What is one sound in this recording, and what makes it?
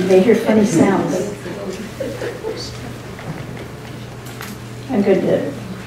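A middle-aged woman speaks calmly into a microphone in a hall with a slight echo.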